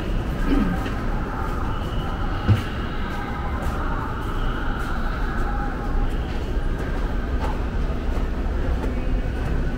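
Footsteps climb hard stairs in a large echoing hall.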